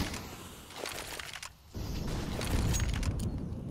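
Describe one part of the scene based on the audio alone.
A smoke grenade hisses as it spreads smoke.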